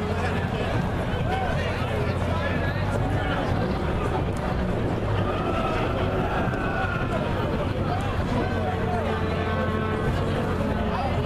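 A crowd of onlookers chatters outdoors.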